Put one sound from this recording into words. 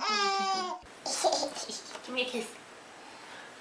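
A woman talks playfully to a toddler up close.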